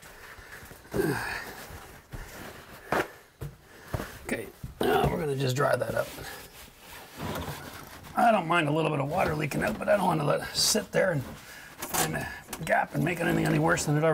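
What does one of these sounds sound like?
Objects knock and rattle under a sink.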